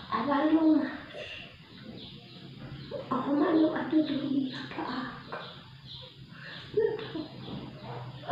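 An elderly woman talks close by in a slow, animated voice.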